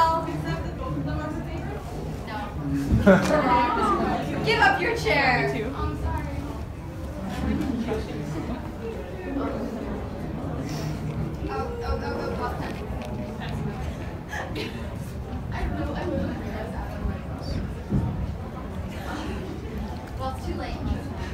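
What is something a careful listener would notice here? Young people chatter and laugh nearby.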